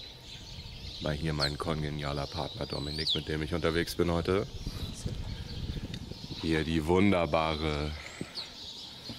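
A young man talks casually close by, outdoors.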